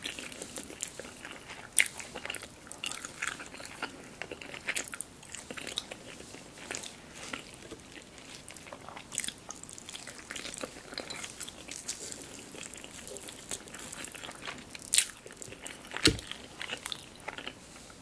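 Cooked chicken meat tears and squelches between fingers.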